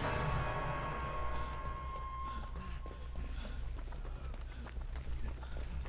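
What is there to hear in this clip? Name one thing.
Footsteps run quickly over dry leaves and grass.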